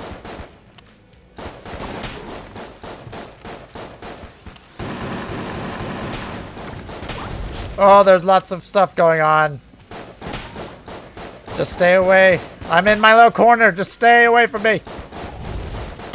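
Guns fire rapid shots in quick bursts.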